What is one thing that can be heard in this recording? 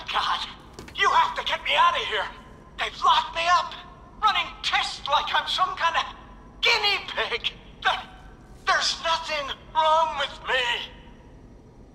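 An elderly man talks with animation, close by.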